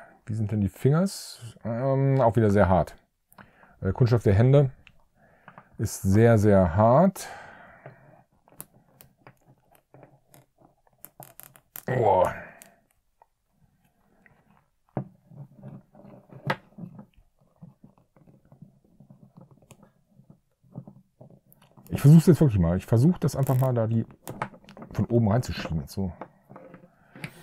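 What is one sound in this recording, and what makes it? Plastic toy joints click as they are moved.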